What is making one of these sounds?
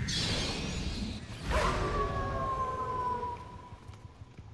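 A creature shrieks and flaps its wings.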